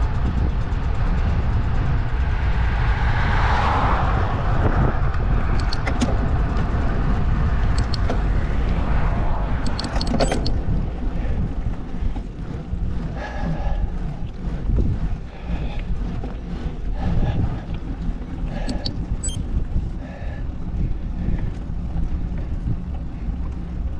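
Tyres roll steadily over asphalt.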